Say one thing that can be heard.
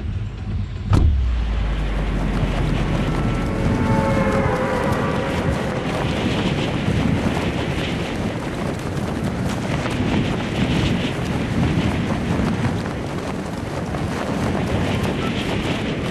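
Wind rushes loudly and steadily during a fall through the sky.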